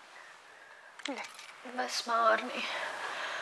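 A woman speaks softly and tenderly close by.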